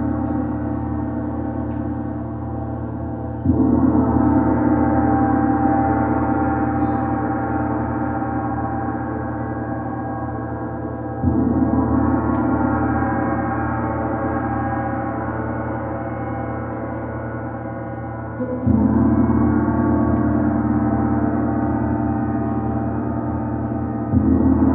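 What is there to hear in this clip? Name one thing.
A large gong is struck softly and hums with a long, swelling, shimmering ring.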